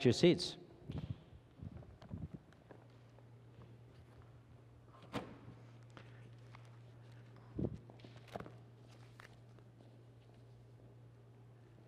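Footsteps and small knocks echo faintly through a large hall.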